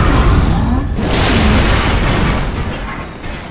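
A heavy blow lands with a loud crash.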